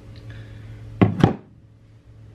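A door thumps shut.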